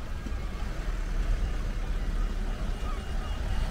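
A pedestrian crossing signal beeps steadily.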